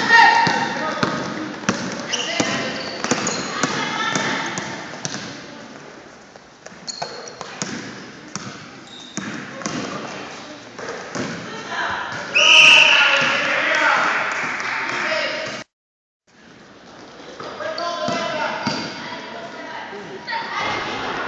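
Children shout and call out across the echoing hall.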